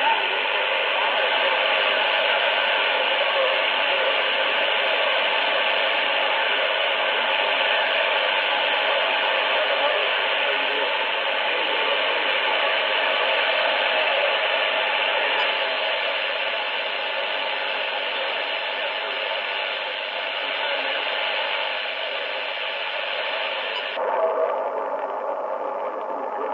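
A shortwave radio hisses and crackles with static through a loudspeaker.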